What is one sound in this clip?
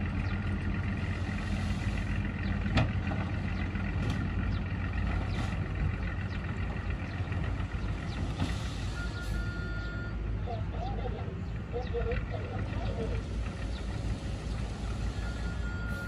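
A bulldozer engine rumbles steadily nearby.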